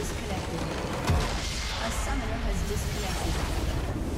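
A crystal structure explodes with a deep boom in a video game.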